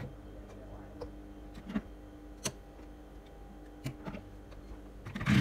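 Small clicks and taps sound as fabric is adjusted under a presser foot.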